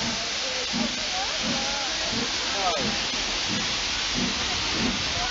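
Railway carriages roll slowly past close by.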